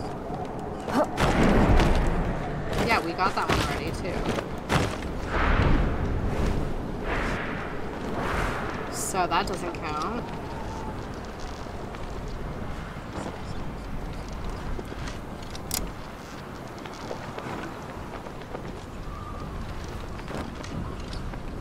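Wind rushes past in loud gusts.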